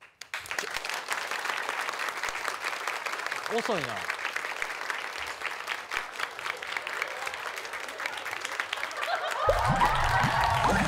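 An audience claps and cheers in a hall.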